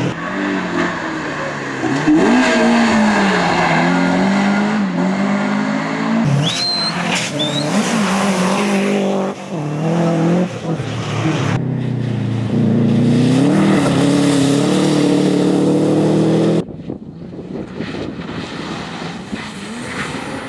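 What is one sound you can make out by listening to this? Rally car engines roar and rev hard as cars speed past one after another.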